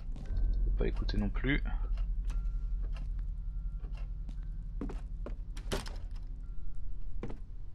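Footsteps creak slowly across a wooden floor.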